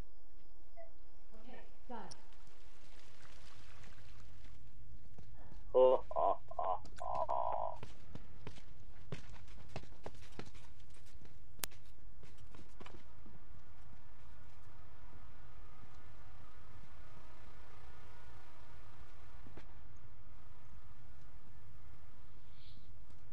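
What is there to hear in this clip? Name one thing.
Footsteps scuff softly on a hard floor as a game character runs.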